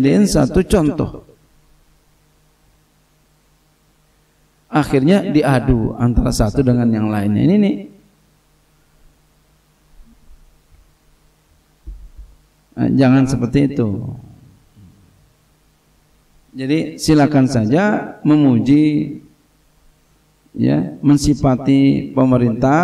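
A middle-aged man speaks calmly into a microphone, in bursts with pauses, heard through a loudspeaker.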